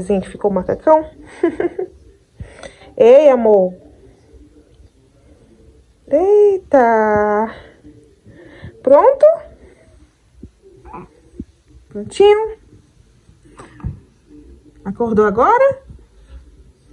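A newborn baby coos and squeals close by in short bursts.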